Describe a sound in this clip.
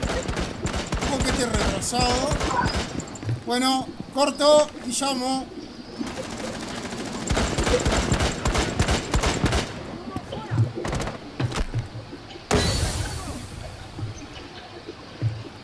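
Footsteps thud on a hard roof.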